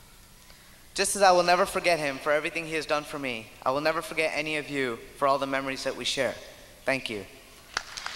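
A young man speaks into a microphone over loudspeakers in a large hall.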